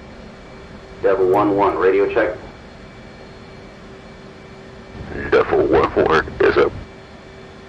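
A young man speaks into a close microphone in short bursts.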